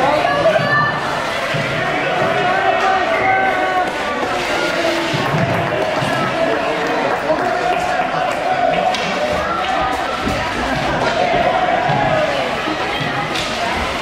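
Ice skates scrape and swish on the ice.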